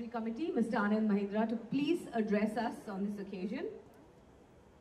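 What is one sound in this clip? A man speaks with animation over a loudspeaker in a large hall.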